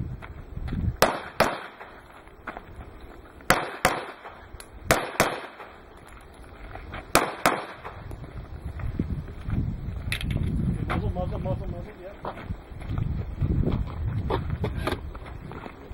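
Pistol shots crack sharply, one or two at a time, outdoors.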